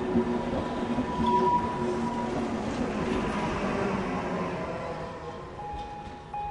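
A train rushes past close by with a loud rumble.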